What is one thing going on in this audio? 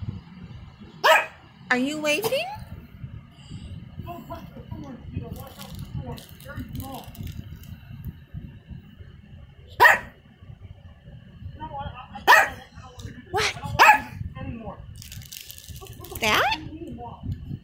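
A small dog gives short, sharp yaps.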